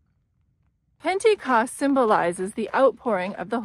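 A middle-aged woman talks cheerfully, close up.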